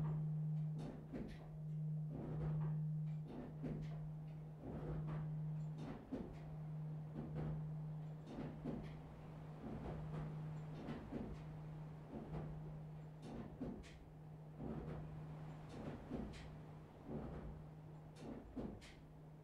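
A swinging church bell tolls close up in a tower, its clapper striking in a regular rhythm.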